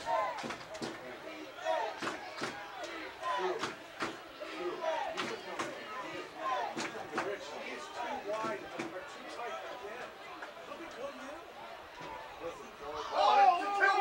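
A crowd of spectators chatters outdoors at a distance.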